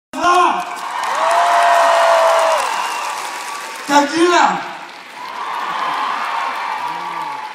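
Fans in a crowd whistle shrilly, with rising and falling whistles.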